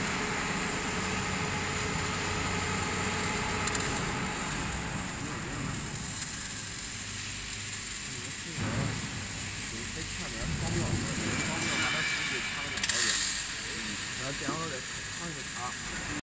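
An automatic welding machine's arc hisses and crackles along a seam in a corrugated steel panel.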